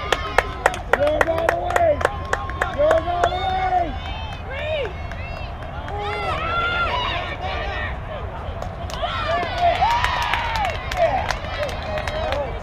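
Young girls cheer and chant outdoors across a field.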